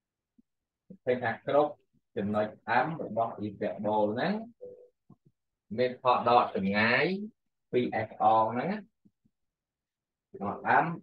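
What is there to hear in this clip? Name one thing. A man speaks calmly and clearly nearby, explaining in a lecturing tone.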